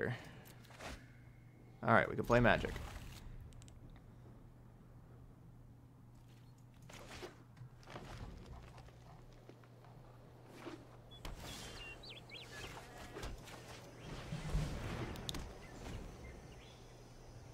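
A man talks into a close microphone, calmly and with occasional animation.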